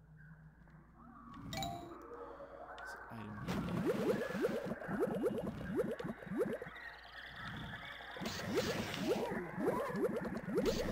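Upbeat video game music plays with a quick pulsing beat.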